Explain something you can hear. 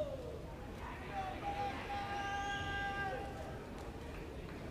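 A man sings through loudspeakers.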